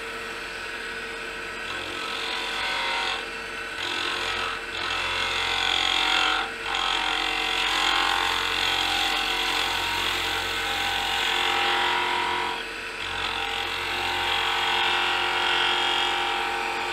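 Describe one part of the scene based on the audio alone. A cutting tool scrapes and hisses against spinning metal, with brief pauses.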